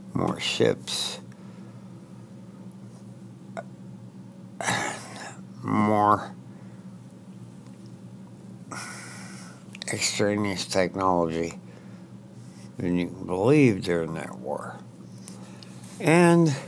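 An elderly man speaks calmly into a headset microphone, close by, in short bursts with pauses.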